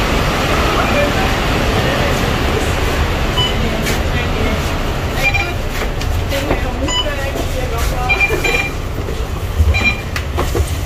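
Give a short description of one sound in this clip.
A card reader beeps several times.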